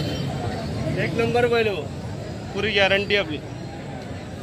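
A man nearby talks loudly.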